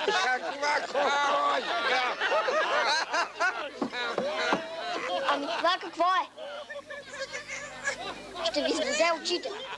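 An elderly man talks and laughs loudly, close by.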